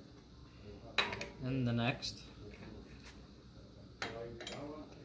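Metal parts clink and knock together as they are handled.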